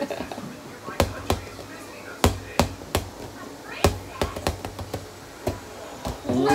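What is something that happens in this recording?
A ball bounces repeatedly on a hard floor.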